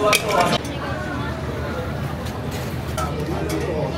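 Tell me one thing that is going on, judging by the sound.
Tongs scrape and toss noodles in a sizzling pan.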